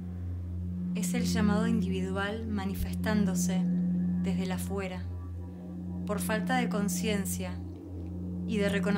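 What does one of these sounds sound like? A young woman sings softly with a wavering voice.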